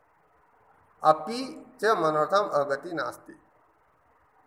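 A middle-aged man speaks calmly through a microphone, as if on an online call.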